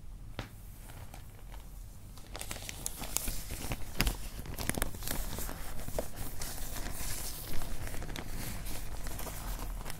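A plastic bag rustles and crinkles as it is handled.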